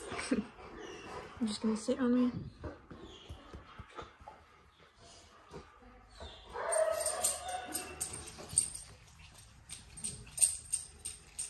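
A hand rubs and pats a dog's fur, rustling softly.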